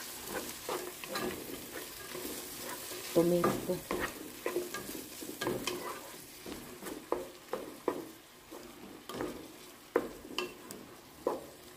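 A wooden spoon scrapes and taps against a pan as vegetables are stirred.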